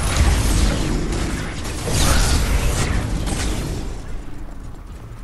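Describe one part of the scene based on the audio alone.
Game gunfire and combat effects crackle and boom.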